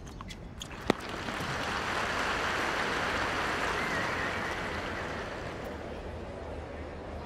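A crowd cheers and applauds in a large arena, then slowly fades.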